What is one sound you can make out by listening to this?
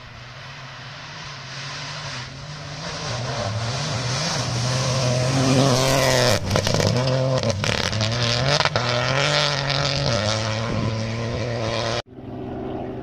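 A car engine roars and revs as the car speeds along a dirt track.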